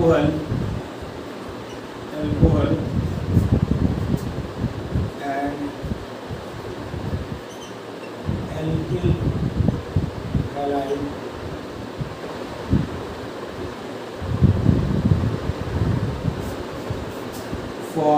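A middle-aged man speaks calmly, explaining as he goes.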